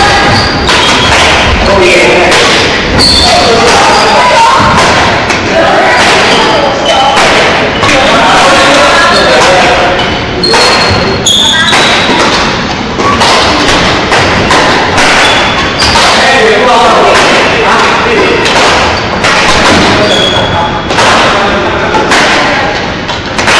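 Badminton rackets strike a shuttlecock in a large echoing hall.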